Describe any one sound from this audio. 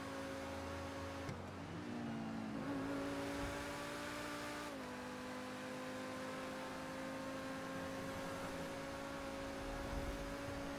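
A sports car engine hums steadily and shifts gears as the car speeds along.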